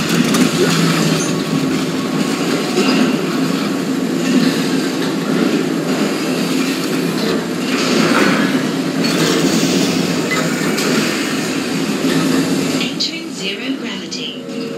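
Heavy metal boots thud on a metal floor.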